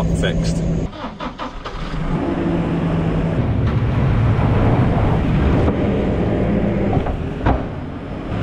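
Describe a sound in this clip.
A loader bucket scrapes and tips out straw with a rustling rush.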